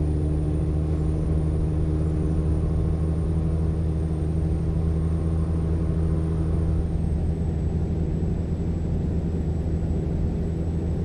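A truck engine hums with a steady low drone while driving.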